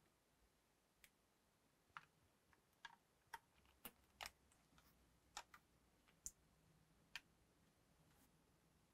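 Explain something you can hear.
Small plastic parts click and tap as hands work on a handheld device.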